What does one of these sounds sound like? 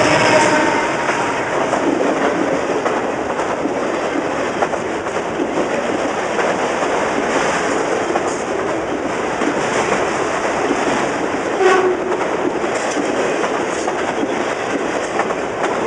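A freight train rumbles past close by with a loud, steady roar.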